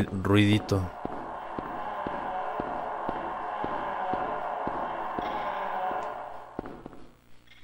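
Footsteps thud slowly and evenly on a hard floor.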